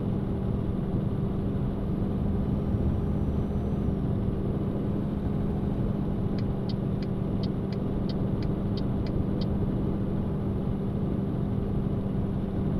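Tyres roll on a highway with a low rumble.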